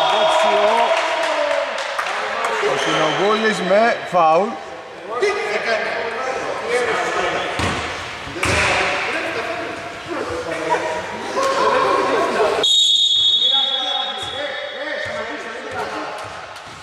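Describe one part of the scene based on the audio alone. Young men shout and call out to each other in a large echoing hall.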